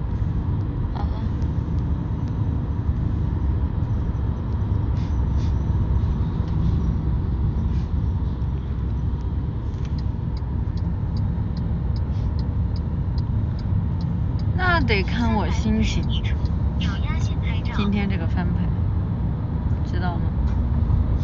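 A young woman speaks briefly and casually, close by.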